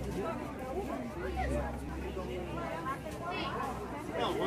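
A crowd of shoppers chatters around.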